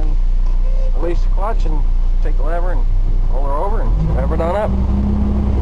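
A diesel engine revs up several times.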